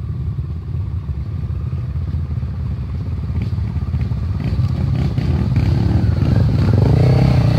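Dirt bike engines buzz in the distance and grow louder as the bikes approach.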